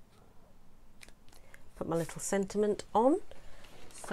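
Paper rustles and taps softly as pieces are handled.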